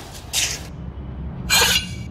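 A knife scrapes out of a wooden block.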